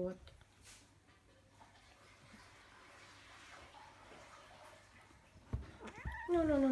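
Two kittens scuffle and thump on a soft cover.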